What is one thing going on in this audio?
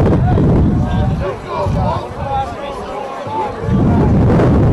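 A young man shouts in the distance outdoors.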